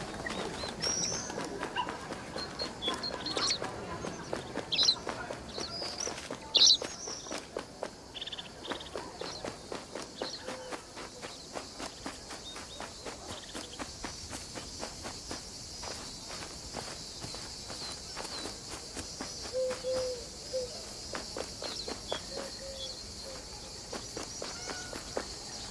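Quick running footsteps patter on the ground.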